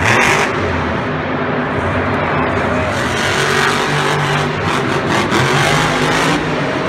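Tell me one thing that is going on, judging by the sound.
A monster truck engine roars loudly in a large echoing arena.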